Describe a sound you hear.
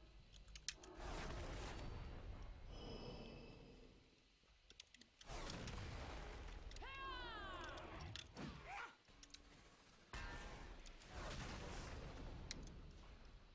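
Fiery spells burst with a loud roaring whoosh.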